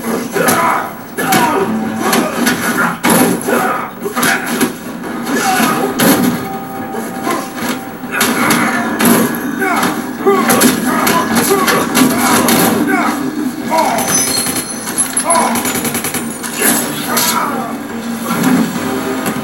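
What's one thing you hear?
Punches and kicks thud and smack from a fighting game through a television speaker.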